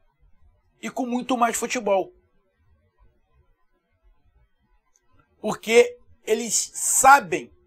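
A middle-aged man speaks animatedly and loudly into a close microphone.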